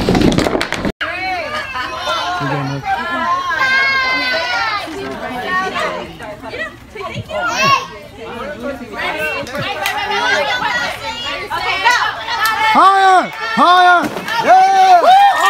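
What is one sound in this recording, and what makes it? A crowd of adults and children talk and cheer outdoors.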